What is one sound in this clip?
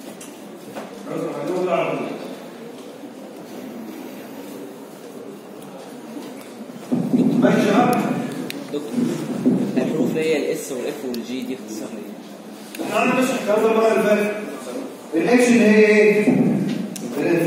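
A man speaks calmly into a microphone, heard through a loudspeaker in an echoing room.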